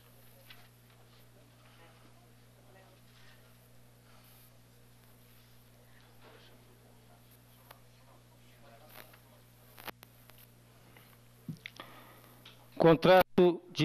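A crowd murmurs softly in a room.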